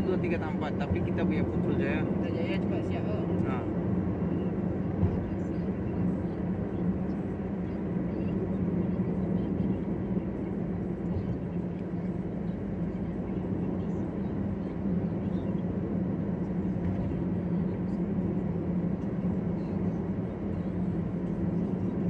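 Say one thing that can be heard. A car engine hums steadily as it drives along a highway.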